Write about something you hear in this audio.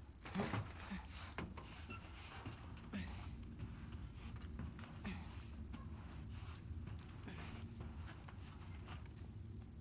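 Knees and hands bump softly along a hollow metal duct.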